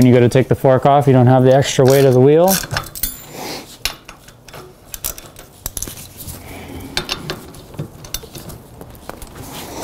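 A bicycle wheel clicks and rattles as hands turn and handle it.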